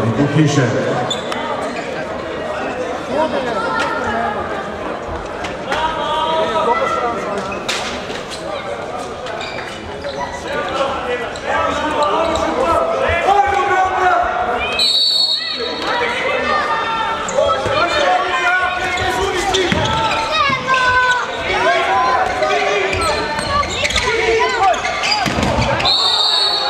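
Spectators chatter and cheer nearby.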